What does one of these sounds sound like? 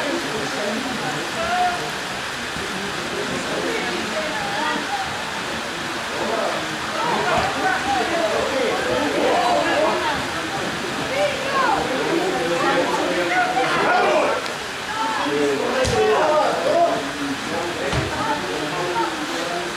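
Boys call out to each other across an outdoor football pitch.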